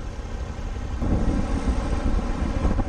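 A large truck engine rumbles close by.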